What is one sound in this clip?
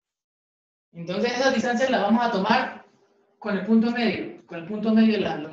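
A man speaks close by, explaining calmly.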